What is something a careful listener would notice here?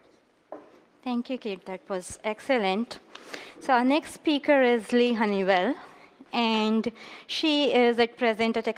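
A young woman speaks clearly through a microphone in a large hall.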